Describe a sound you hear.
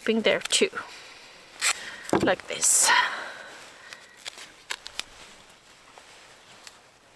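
Paper crinkles and rustles between fingers.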